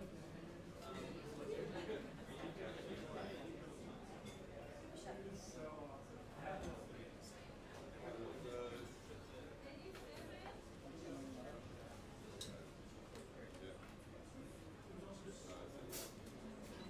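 Drums and cymbals tap out a light rhythm.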